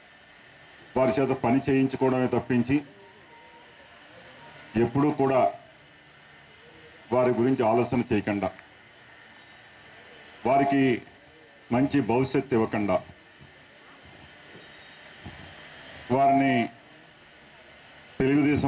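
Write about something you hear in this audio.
A middle-aged man speaks into a microphone over a loudspeaker, in bursts with pauses.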